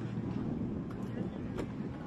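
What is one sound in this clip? Feet thud on grass as players run.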